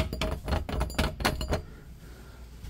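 A doorknob rattles and clicks as a hand turns it.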